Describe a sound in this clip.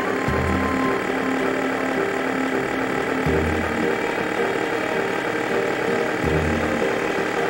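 A small cartoon car's engine hums steadily as it drives.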